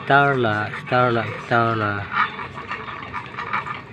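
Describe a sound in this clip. A dog eats from a metal pan.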